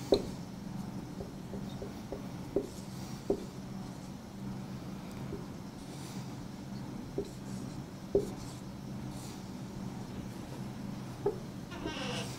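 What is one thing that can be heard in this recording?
A marker taps against a whiteboard.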